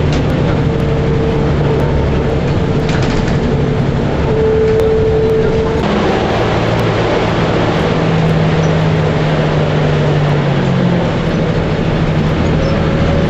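Tyres roll and rumble on the road.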